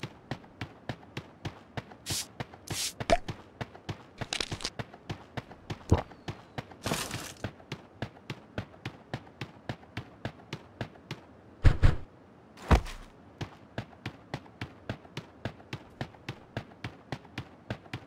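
Footsteps thud quickly and evenly across grass.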